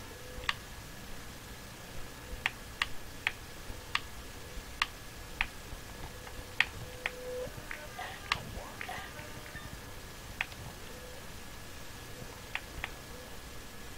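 Short sharp game sound effects click and chime now and then.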